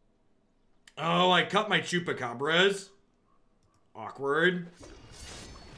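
A man talks through a microphone with animation.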